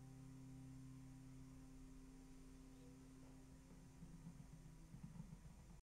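A nylon-string classical guitar is fingerpicked.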